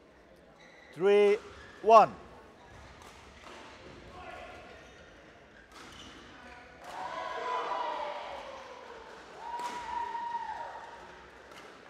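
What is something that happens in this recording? Sneakers squeak loudly on a court floor.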